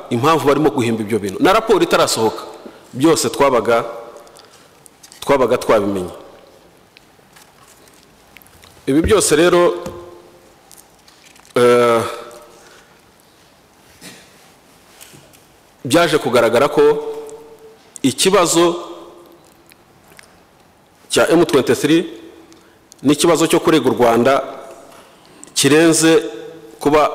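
A middle-aged man speaks calmly into a microphone, in bursts with pauses, in a slightly echoing room.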